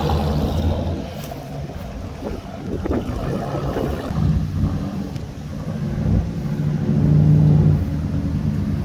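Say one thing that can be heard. A car's exhaust rumbles as it drives off down the street and fades.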